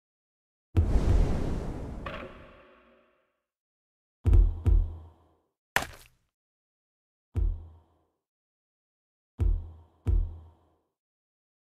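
Game menu sounds whoosh and click as a map opens and is browsed.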